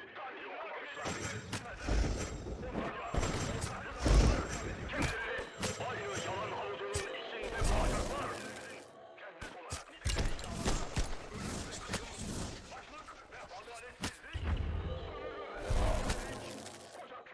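Swords clash and magic blasts burst in a fight.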